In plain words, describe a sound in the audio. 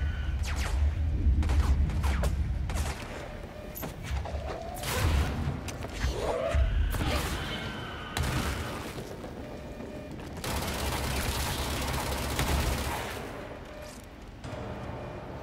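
Gunshots fire rapidly in a video game.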